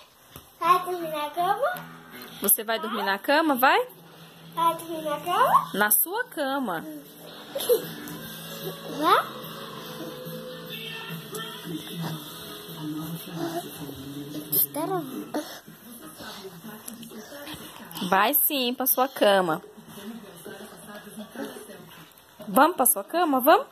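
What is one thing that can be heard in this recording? A baby squeals and babbles up close.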